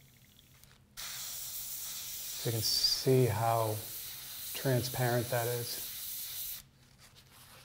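An airbrush hisses steadily.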